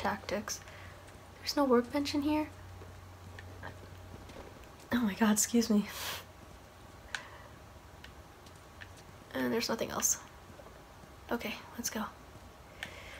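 A young woman talks calmly into a close microphone.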